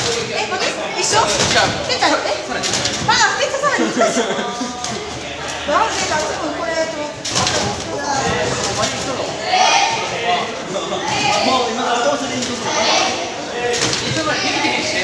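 A trampoline creaks and thumps as a gymnast bounces.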